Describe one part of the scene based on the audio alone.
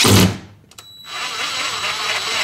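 A cordless drill whirs.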